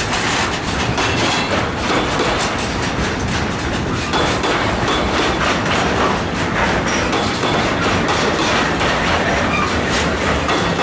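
Freight wagon wheels clack over rail joints.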